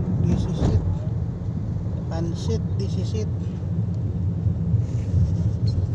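Traffic rumbles steadily past outside.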